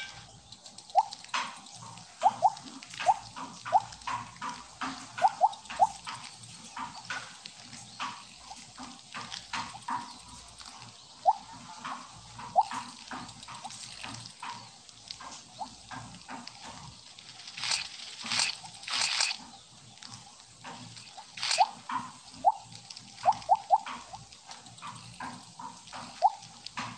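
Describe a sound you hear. Short rising electronic blips sound again and again as a game snake eats.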